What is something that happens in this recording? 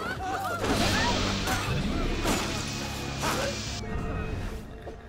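A crowd brawls with loud shouting and blows.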